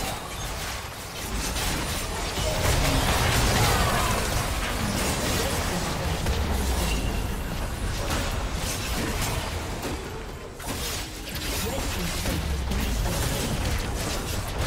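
Spell effects and weapon strikes clash and burst in a hectic game battle.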